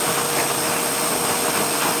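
A dog pants.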